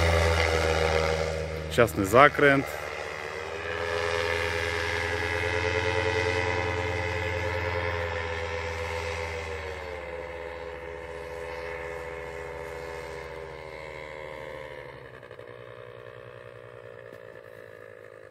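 A paramotor engine drones overhead and slowly fades into the distance.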